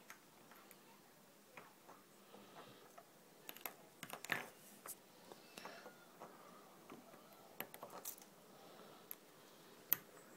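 Soft plastic squeaks and rubs under fingers.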